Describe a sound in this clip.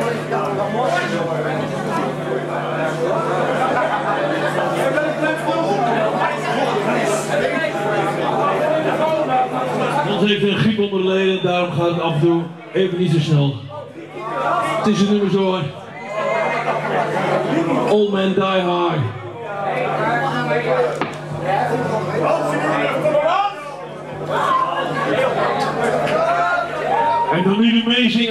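An electric guitar plays loudly.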